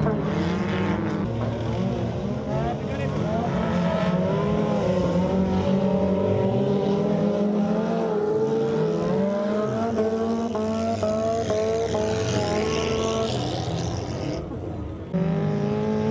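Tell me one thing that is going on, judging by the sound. Old wrecked cars race on a dirt track, their engines revving hard.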